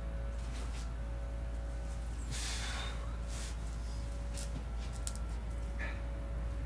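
A man breathes out sharply while exercising.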